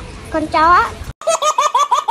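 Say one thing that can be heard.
A young child speaks briefly up close.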